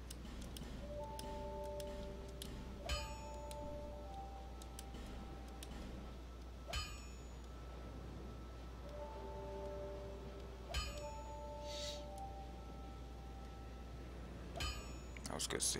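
Game menu sounds chime and click.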